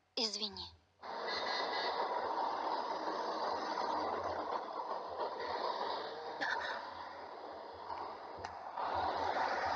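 A city street hums with traffic.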